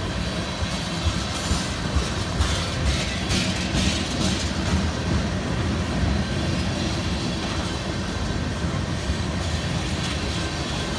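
Train wheels clack and squeal on the rails.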